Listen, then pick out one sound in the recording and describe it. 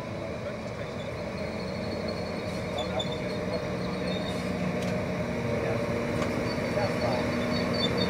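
Train brakes squeal faintly as the train slows.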